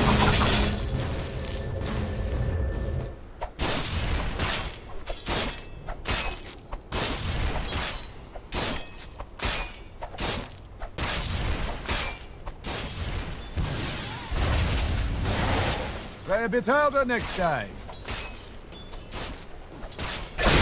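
Game spell effects crackle and whoosh during a battle.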